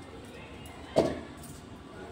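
A bucket is set down on a hard floor with a knock.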